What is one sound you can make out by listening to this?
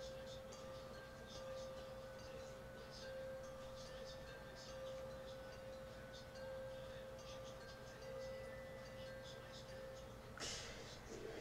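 Light rain patters softly.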